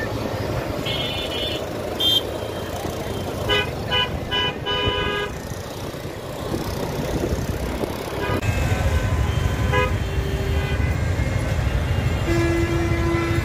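Horns honk in short repeated bursts.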